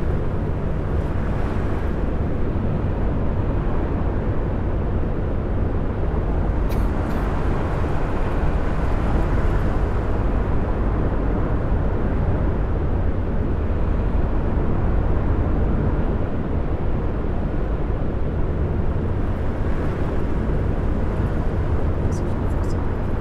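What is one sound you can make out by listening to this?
Tyres roar on a road surface.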